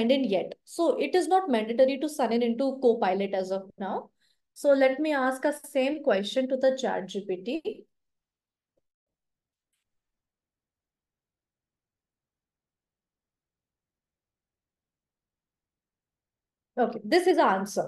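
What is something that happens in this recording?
A young woman speaks calmly into a microphone, close by.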